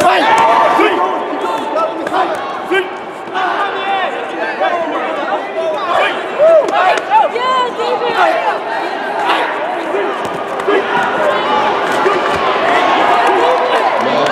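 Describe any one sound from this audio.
Kicks thud against padded body protectors.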